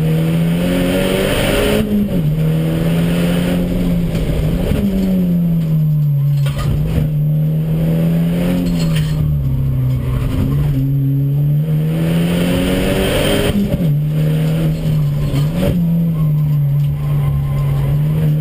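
A car engine roars loudly from inside the cabin, rising and falling in pitch as the driver shifts gears.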